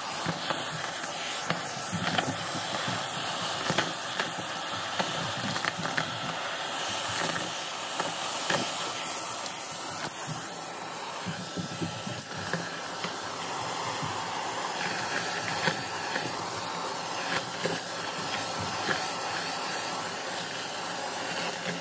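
A vacuum cleaner hums loudly and steadily.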